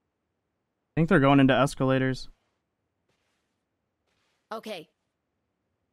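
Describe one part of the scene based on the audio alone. A man speaks loudly and with animation into a microphone, in short bursts.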